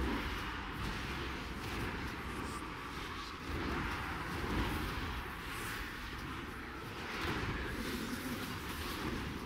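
Magic spell effects whoosh and crackle in quick succession.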